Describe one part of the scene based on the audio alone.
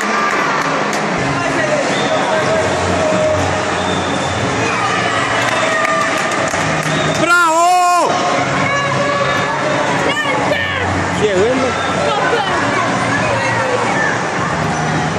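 Children shout and call out from the water and the poolside.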